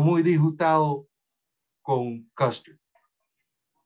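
A man speaks calmly over an online call, in short bursts.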